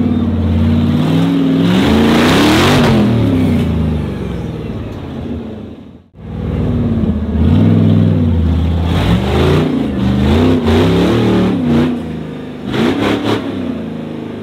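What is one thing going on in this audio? An off-road vehicle's engine revs hard, rising and falling in pitch.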